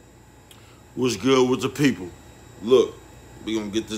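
A man speaks loudly and emphatically into a close microphone.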